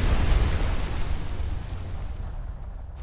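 A wave crashes loudly against rocks.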